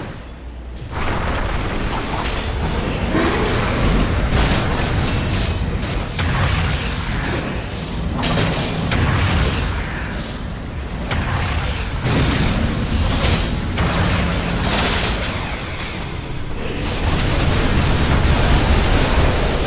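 Spell effects crackle, zap and burst in a video game battle.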